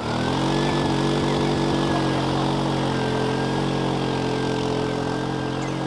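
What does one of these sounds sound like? A van engine runs and revs hard.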